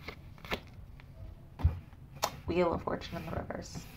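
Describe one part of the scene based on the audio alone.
A card is laid on a table with a soft tap.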